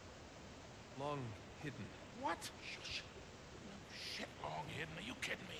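An older man speaks with disbelief in a gravelly voice.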